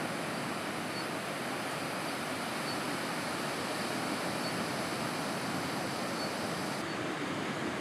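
Waves break and rush with a steady roar.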